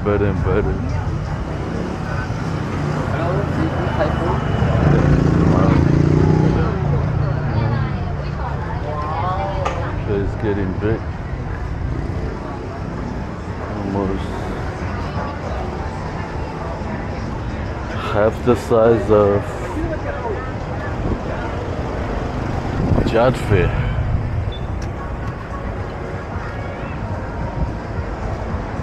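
Men and women talk and chatter outdoors at intervals, some close by.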